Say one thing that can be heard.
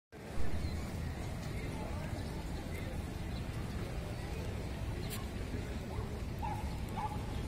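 Water laps gently against moored boats.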